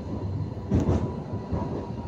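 Another tram passes close by.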